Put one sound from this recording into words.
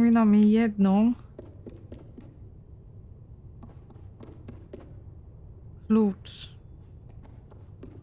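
Small footsteps patter on a wooden floor.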